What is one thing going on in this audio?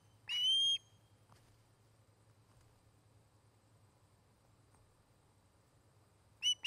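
A large bird gives a loud, high, ringing call, twice.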